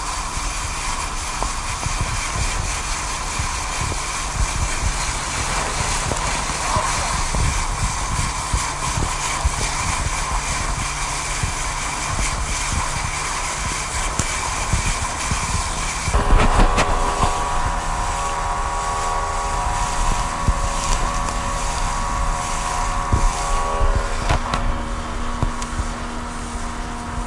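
Water rushes and splashes along an inflatable boat's hull.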